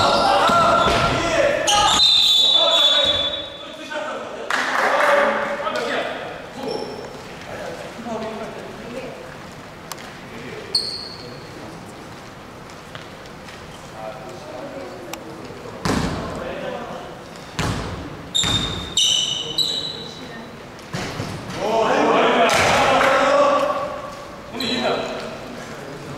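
Young men shout and call out to each other across the court.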